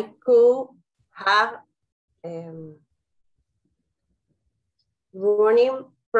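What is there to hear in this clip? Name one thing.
A woman speaks slowly and clearly in short phrases over an online call.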